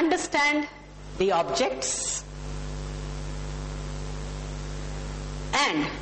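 A woman speaks calmly, as if lecturing.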